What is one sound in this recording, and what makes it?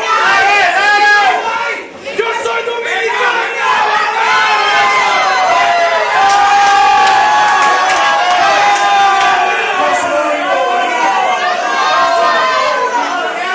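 A crowd cheers and chants loudly in an echoing hall.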